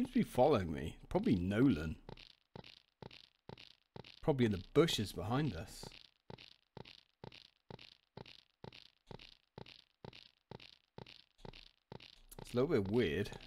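Footsteps tap steadily on pavement at a walking pace.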